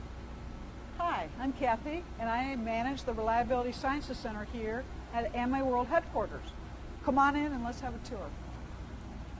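A middle-aged woman speaks close by with animation.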